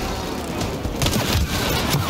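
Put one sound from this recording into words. A fiery explosion bursts with a loud boom.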